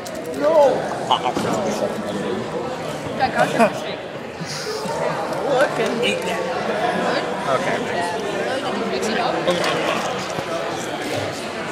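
A crowd of young people chatters throughout, in a noisy echoing room.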